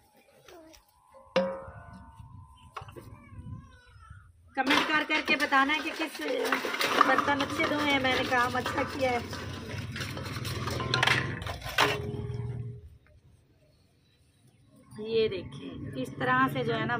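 Metal dishes clink and clatter as they are scrubbed and rinsed.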